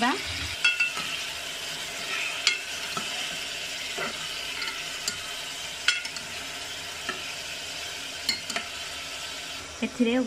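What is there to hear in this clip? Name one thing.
A spatula scrapes and clinks against a metal pot.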